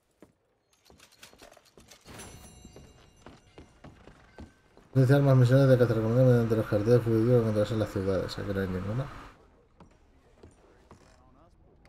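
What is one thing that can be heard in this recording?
Boots thud on wooden floorboards.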